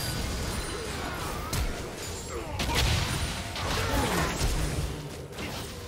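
Video game spell effects whoosh and crash during a fight.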